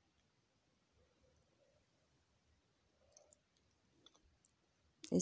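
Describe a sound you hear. Metal needles click softly as they are pushed by hand.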